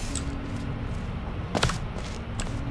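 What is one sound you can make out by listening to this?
A sci-fi gun fires with a short electronic zap.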